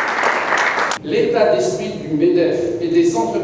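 An elderly man speaks calmly into a microphone over loudspeakers in a large room.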